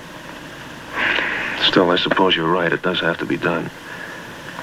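A young man speaks calmly and softly, close by.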